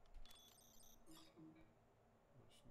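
An error buzzer sounds.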